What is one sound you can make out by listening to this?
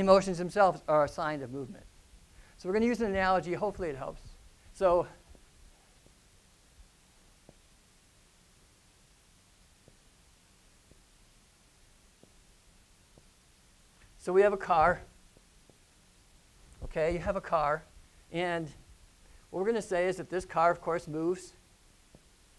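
A middle-aged man speaks calmly through a microphone, with pauses.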